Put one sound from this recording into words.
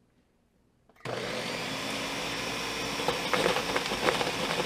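A blender motor starts suddenly and whirs loudly.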